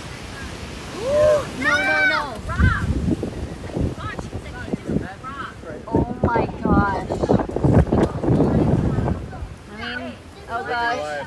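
Young men whoop and shout outdoors.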